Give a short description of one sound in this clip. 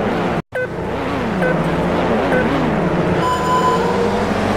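Short electronic beeps count down before the start.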